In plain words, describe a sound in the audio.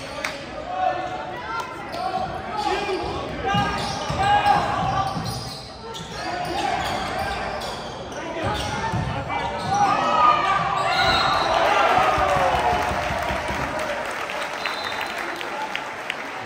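A crowd of spectators chatters and cheers in a large echoing gym.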